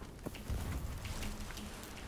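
Flames crackle.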